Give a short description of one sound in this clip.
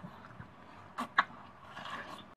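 A young man bites and slurps juicy watermelon.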